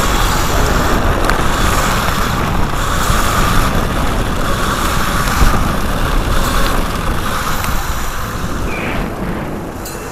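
Hard wheels of a board rumble and rattle over a bumpy dirt track.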